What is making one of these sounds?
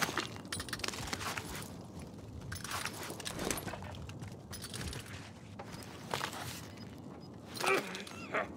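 Footsteps tread quickly over grass and dirt.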